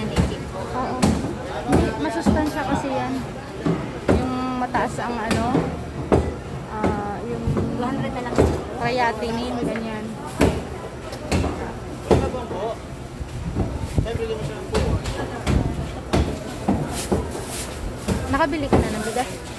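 Several adults talk nearby with animation.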